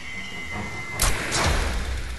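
A flare gun fires with a sharp bang.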